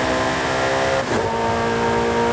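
A sports car engine dips briefly as the gear changes.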